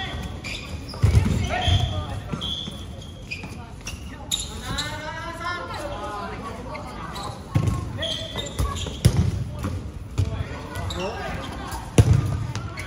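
A volleyball thumps against forearms in an echoing hall.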